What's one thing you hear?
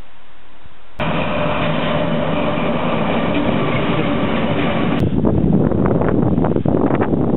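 Freight wagons rumble and clatter along the rails.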